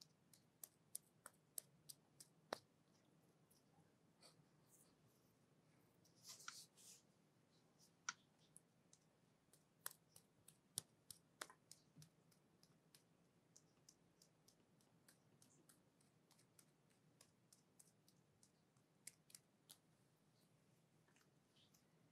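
Cream-covered hands rub and slide over bare forearms close up, with sticky wet clicks.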